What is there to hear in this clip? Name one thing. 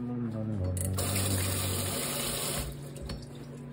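Tap water splashes into a metal sink.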